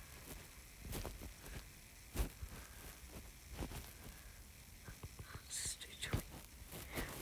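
Sword blows strike a skeleton in a game, with short hits.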